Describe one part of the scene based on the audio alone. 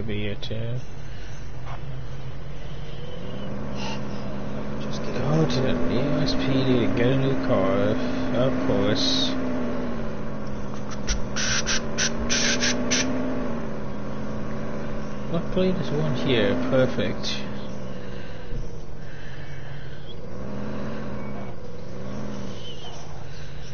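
A car engine hums and revs as a vehicle drives.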